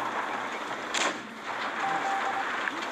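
A tank cannon fires with a sharp blast.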